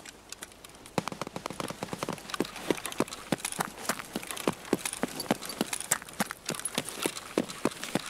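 Footsteps thud steadily on hard pavement.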